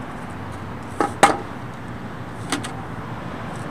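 A metal paint can clanks as it is picked up.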